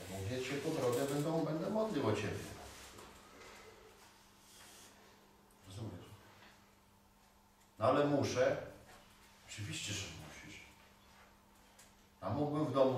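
A middle-aged man speaks calmly in a quiet room, with pauses.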